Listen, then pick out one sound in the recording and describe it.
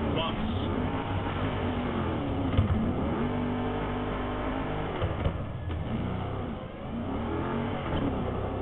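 An engine revs hard, rising and falling in pitch.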